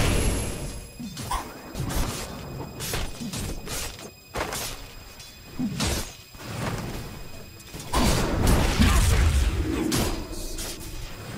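Spell blasts and weapon hits crackle and thud in quick bursts.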